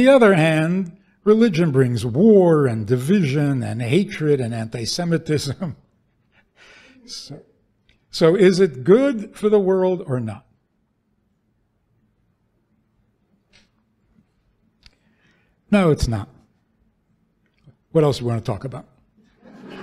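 An elderly man speaks slowly and with feeling into a microphone, in a large echoing hall.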